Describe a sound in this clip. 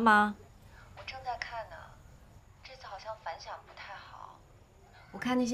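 A young woman answers calmly, close by.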